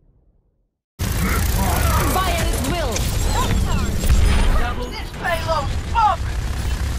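Pistols fire in quick bursts amid loud game action.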